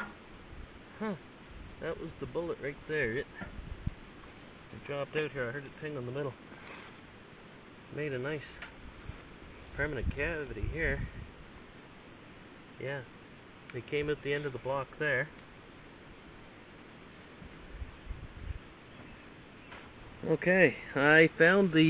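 A middle-aged man talks calmly close by, outdoors.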